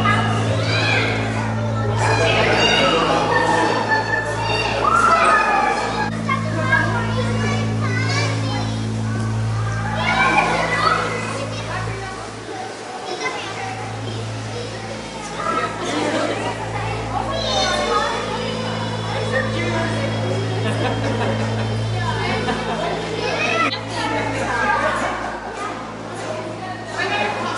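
Children chatter and call out excitedly nearby.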